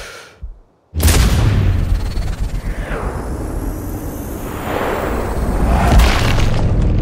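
A jet engine roars loudly as an aircraft sweeps overhead.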